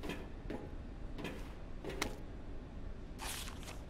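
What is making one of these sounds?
Paper rustles as a sheet is picked up.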